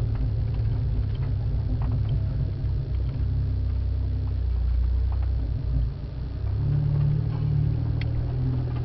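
Tyres crunch over a dirt track.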